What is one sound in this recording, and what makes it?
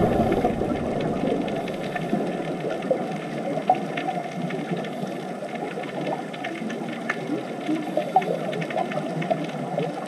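Air bubbles from divers gurgle and rumble in muffled underwater noise.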